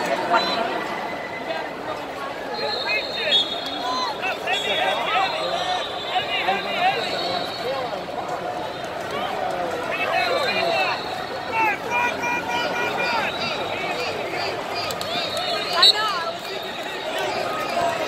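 A large crowd chatters in a big echoing hall.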